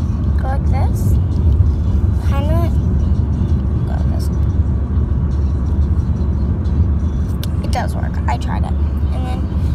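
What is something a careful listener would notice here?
A car's engine and road noise rumble low and steady.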